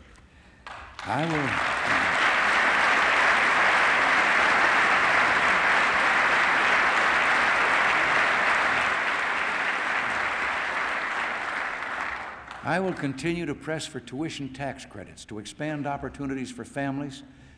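An elderly man speaks steadily into a microphone in a large hall.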